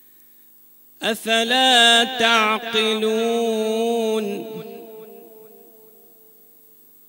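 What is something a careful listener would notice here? A man chants a long melodic phrase into a microphone, echoing in a large hall.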